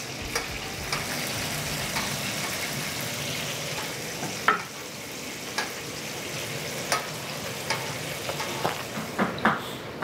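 Patties sizzle on a hot griddle.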